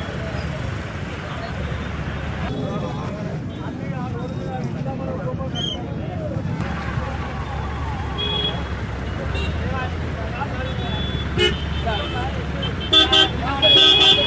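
A crowd of men talks and murmurs outdoors.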